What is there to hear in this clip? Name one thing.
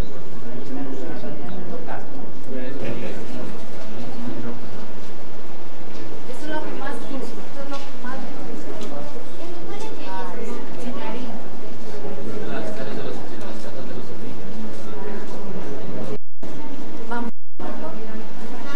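Several people murmur and chat.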